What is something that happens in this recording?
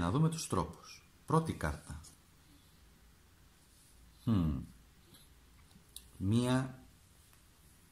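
A card slides and flips softly on a cloth.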